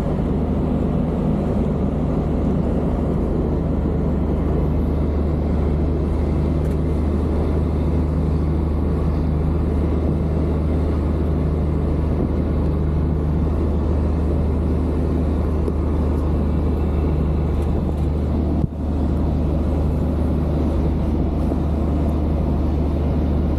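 Tyres roll with a constant rumble on the road.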